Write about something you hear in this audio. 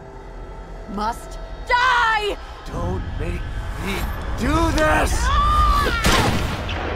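A man speaks tensely and close.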